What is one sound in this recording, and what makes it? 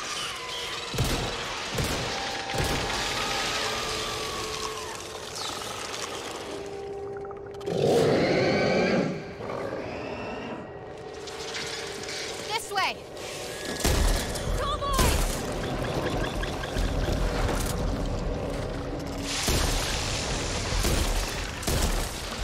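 Gunshots boom in short bursts.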